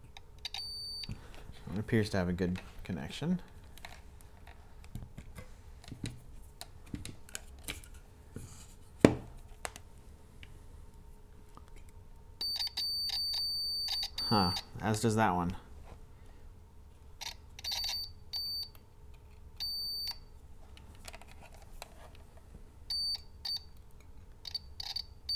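Small metal probes tap and click against a circuit board.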